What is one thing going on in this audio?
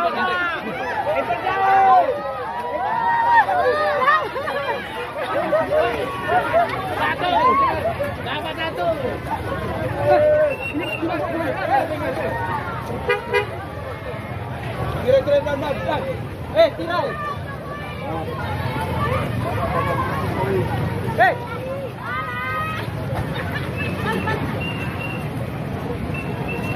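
A crowd of men and women shouts and chatters excitedly close by.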